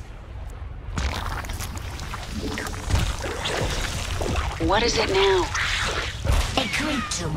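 Game creatures skitter and clatter in quick bursts.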